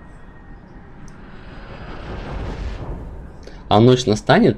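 A fire flares up with a roaring whoosh.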